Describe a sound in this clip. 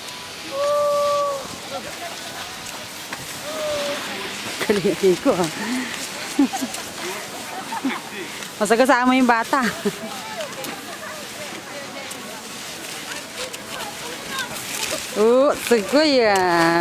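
Skis scrape over crusty snow.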